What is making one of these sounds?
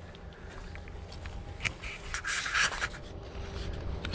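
Something rubs and rustles right against the microphone.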